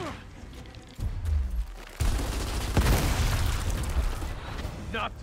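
Gunfire and explosions boom.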